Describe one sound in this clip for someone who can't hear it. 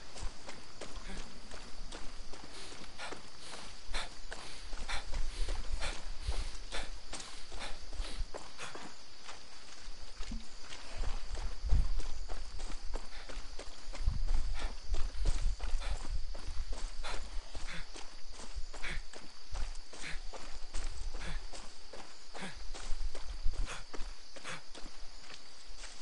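Footsteps crunch quickly on a dirt path.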